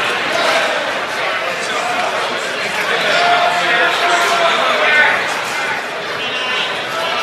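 A large crowd chatters and murmurs in an echoing hall.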